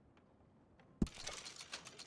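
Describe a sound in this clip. A short click sounds.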